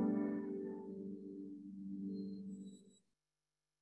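A piano plays sustained notes that fade away.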